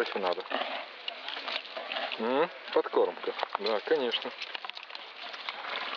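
A horse crunches food as it chews.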